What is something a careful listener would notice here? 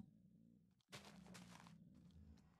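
A block breaks with a short crunch.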